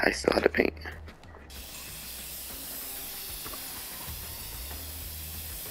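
Spray paint hisses from a can.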